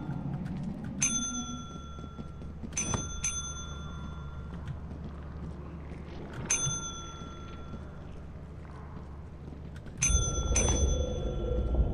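A bell rings with a clear, ringing tone.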